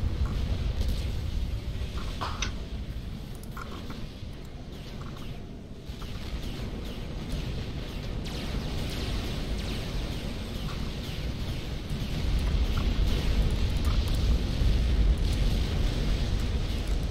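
Laser guns zap repeatedly in quick bursts.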